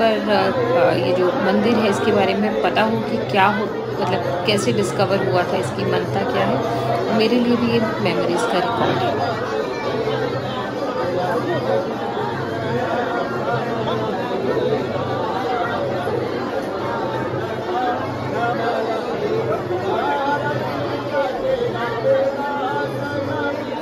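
A crowd of men and women murmurs and chatters all around.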